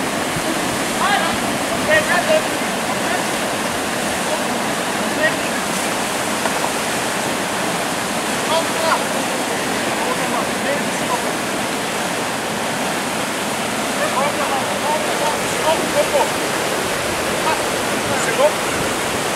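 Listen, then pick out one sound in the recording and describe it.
Young men shout now and then from a raft over the rushing water.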